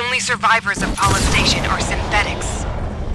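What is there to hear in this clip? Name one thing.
An explosion booms with a loud roar.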